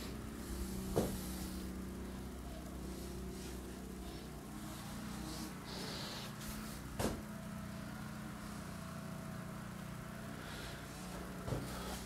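A wooden door frame knocks sharply a few times.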